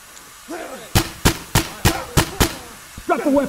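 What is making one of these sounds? A gun fires a quick burst of loud shots.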